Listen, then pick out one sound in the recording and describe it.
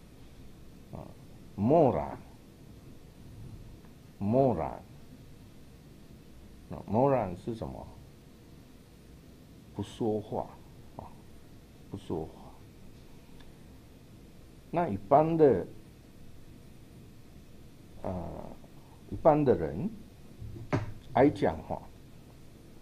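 A man speaks slowly and calmly into a microphone, in short phrases with pauses.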